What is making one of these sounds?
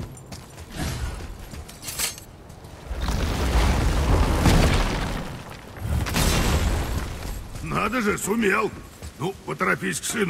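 Heavy footsteps thud on a hard floor.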